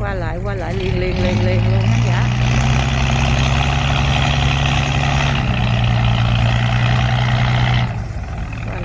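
Motorbike engines idle and rev up close.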